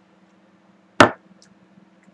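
A glass is set down on a table with a single knock.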